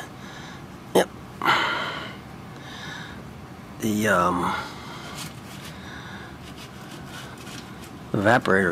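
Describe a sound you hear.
A finger scrapes and brushes crumbs across a hard floor.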